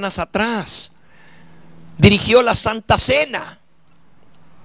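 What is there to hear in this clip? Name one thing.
An elderly man preaches with animation into a microphone.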